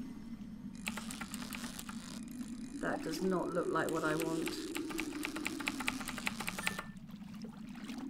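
A fishing reel whirrs with fast ticking as the line is wound in.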